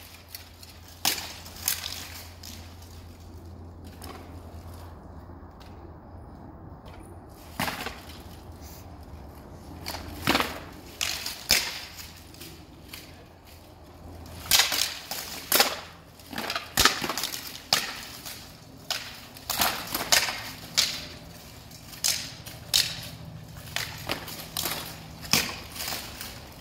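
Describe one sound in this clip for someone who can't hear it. Swords clash against armour in sharp metallic strikes, echoing in a large hall.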